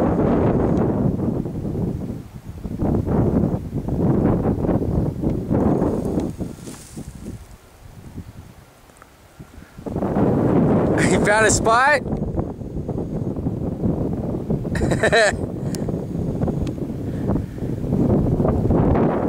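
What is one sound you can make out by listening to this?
Wind blows outdoors, rumbling across the microphone in gusts.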